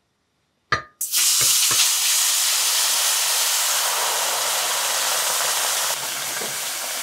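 Liquid pours into a hot pan and sizzles loudly.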